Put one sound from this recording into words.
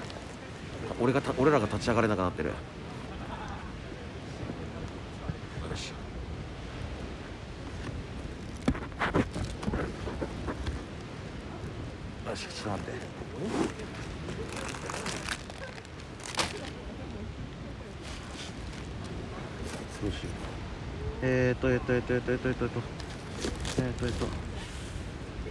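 A young man talks close to the microphone in bursts.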